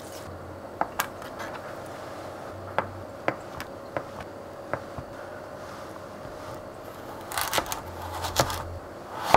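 A knife cuts through soft tofu and taps a cutting board.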